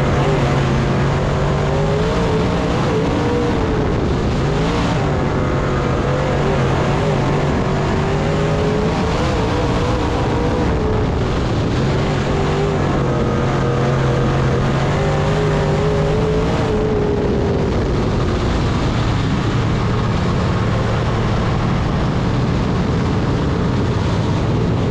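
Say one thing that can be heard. A race car engine roars loudly up close, rising and falling in pitch as it speeds up and slows down.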